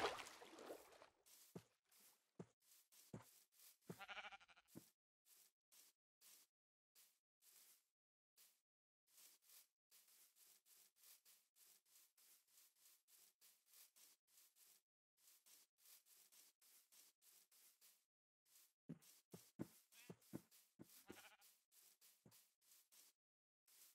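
Footsteps crunch through grass at a steady walking pace.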